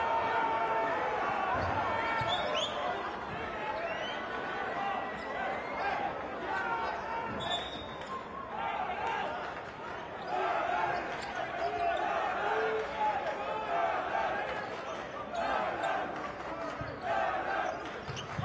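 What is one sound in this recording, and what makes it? A crowd cheers and chatters loudly in a large echoing arena.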